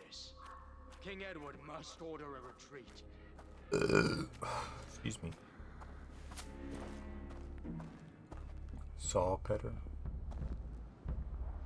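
Footsteps crunch softly on the ground.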